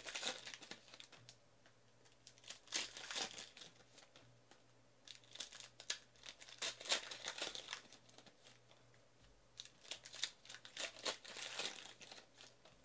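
Plastic card wrappers crinkle and tear.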